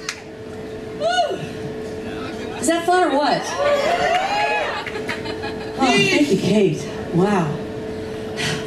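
A woman sings into a microphone over a loudspeaker system.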